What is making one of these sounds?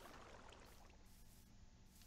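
A pig grunts nearby.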